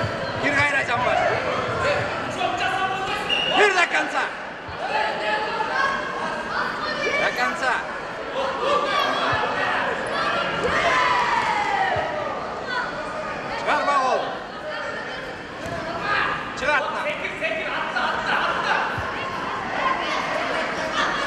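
A crowd of children and adults shouts and cheers in an echoing hall.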